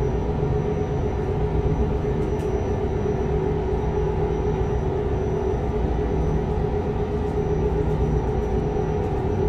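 A truck engine drones steadily at cruising speed.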